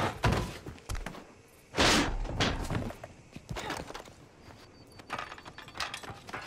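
Boots clatter on metal ladder rungs.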